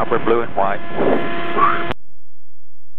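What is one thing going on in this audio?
An adult man speaks over a headset intercom.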